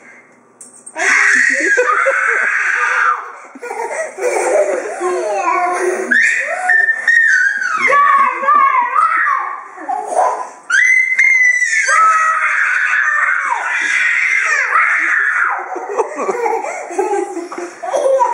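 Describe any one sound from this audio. A toddler squeals and laughs loudly close by.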